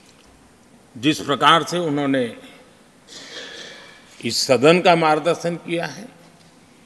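An elderly man speaks calmly and deliberately into a microphone in a large hall.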